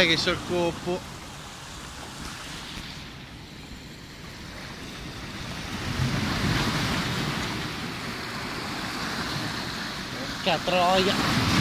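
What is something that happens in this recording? Waves wash and splash against rocks.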